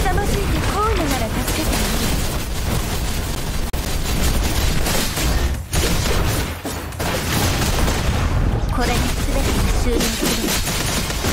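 Sword slashes whoosh and clash rapidly.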